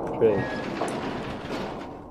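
A heavy metal door creaks as it swings open.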